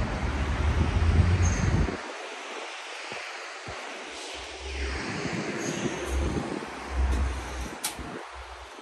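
Traffic hums faintly in the distance on a city street.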